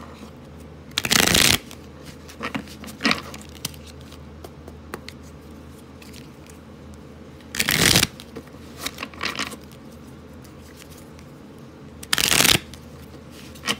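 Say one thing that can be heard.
A plastic wrapper crinkles and rustles as it is handled.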